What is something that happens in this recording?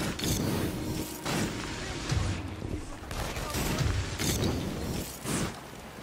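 A fiery rush whooshes past in quick bursts.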